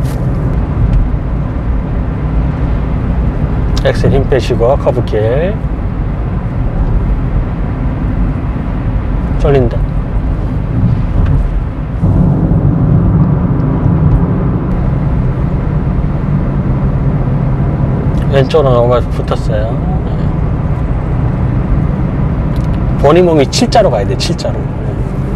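A car engine hums with steady road rumble while driving.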